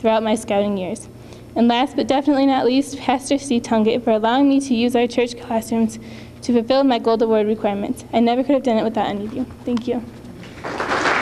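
A young woman reads out through a microphone in a large echoing hall.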